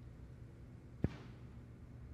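A cue strikes a snooker ball with a single sharp click.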